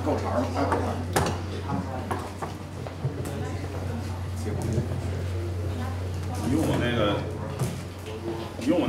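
A second middle-aged man answers with animation through a microphone.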